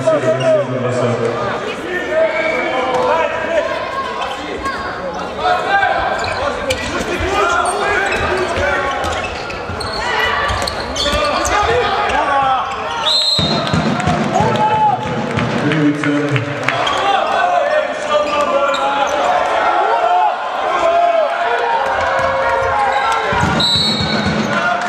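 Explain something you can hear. Sneakers squeak on the court floor.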